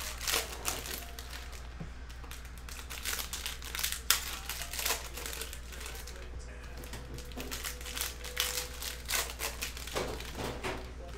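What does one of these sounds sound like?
Foil wrappers crinkle as packs are handled.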